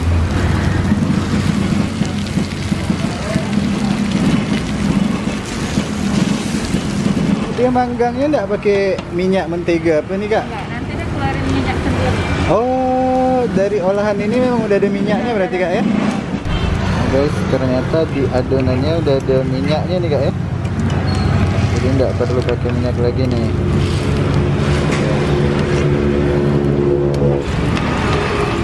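Noodle patties sizzle in oil in a frying pan.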